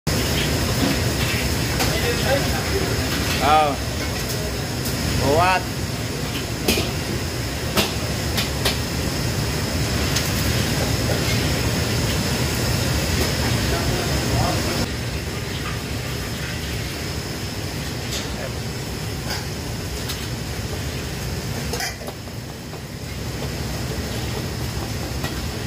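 Gas burners roar steadily under woks.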